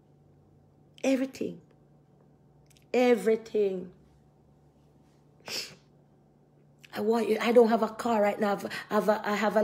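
A middle-aged woman speaks with animation close to a phone microphone, in short bursts and then at length.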